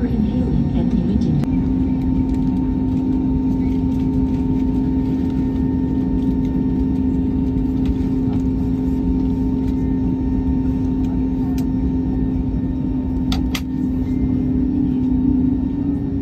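Aircraft wheels rumble over a runway.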